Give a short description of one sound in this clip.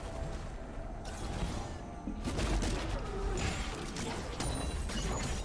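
Video game spell effects and hits crackle and whoosh in a busy battle.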